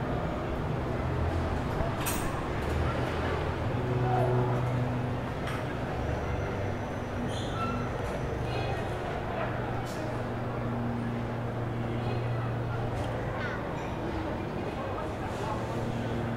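Electronic noise and low droning tones play through speakers.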